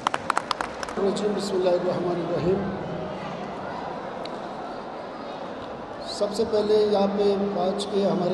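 A man speaks steadily into a microphone through a loudspeaker.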